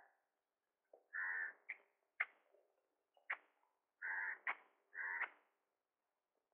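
A hoe strikes the soil in heavy chops.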